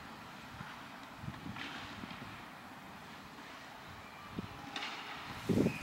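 Young players shout to each other far off across an open field.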